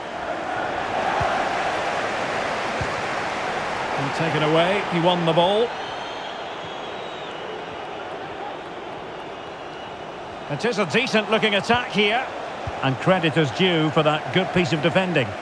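A large crowd roars steadily in a stadium.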